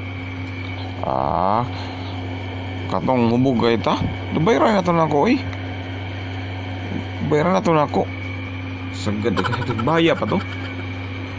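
A man speaks in a flat, synthetic computer voice, sounding annoyed.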